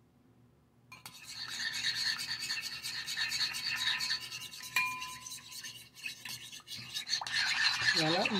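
A spoon scrapes and clinks quickly in a bowl.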